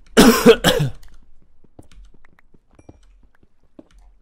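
A pickaxe taps and chips at stone blocks.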